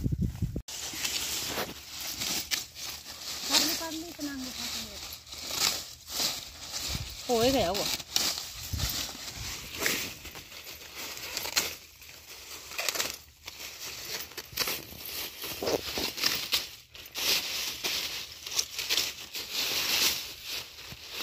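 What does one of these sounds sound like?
Leafy stalks rustle and crackle as hands push through them.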